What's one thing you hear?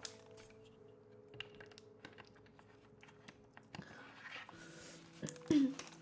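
A plastic bottle crinkles in a young woman's hands.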